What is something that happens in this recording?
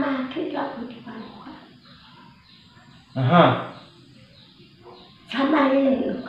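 An elderly woman speaks with animation close by.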